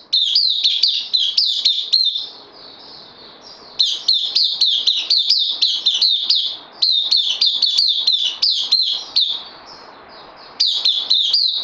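A small bird sings close by in rapid, repeated chirping bursts.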